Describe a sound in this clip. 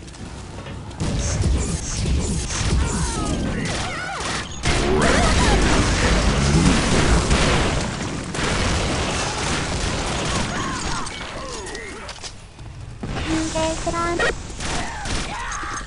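A machine pistol fires rapid bursts of shots.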